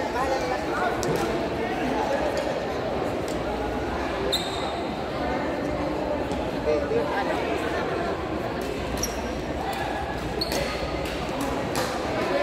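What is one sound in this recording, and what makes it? Shuttlecocks are struck with rackets in sharp taps.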